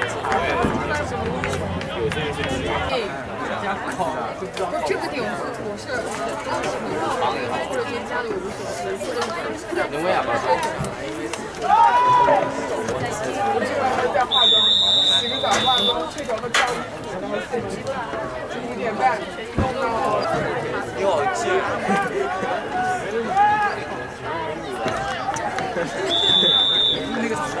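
A crowd of young players and coaches chatter and call out outdoors.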